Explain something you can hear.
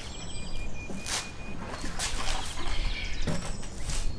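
A plastic barrel thuds onto concrete.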